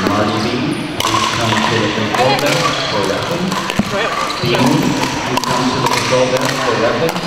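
Paddles strike a plastic ball with sharp pops.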